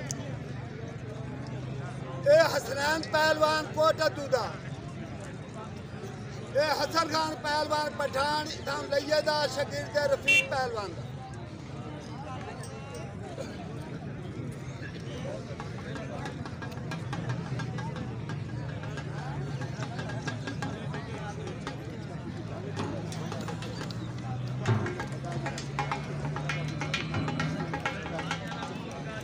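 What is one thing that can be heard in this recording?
A large outdoor crowd murmurs.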